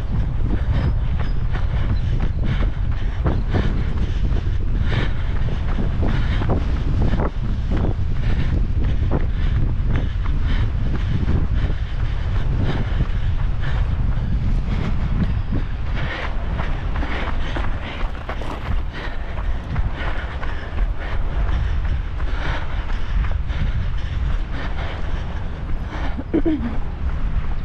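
Wind blusters steadily against the microphone outdoors.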